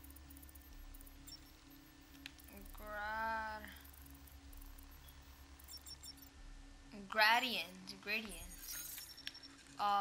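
An electronic device chirps and warbles while being hacked.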